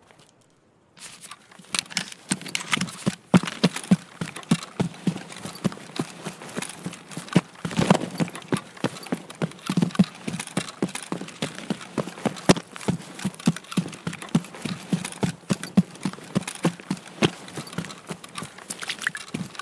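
Footsteps crunch steadily on sand and gravel.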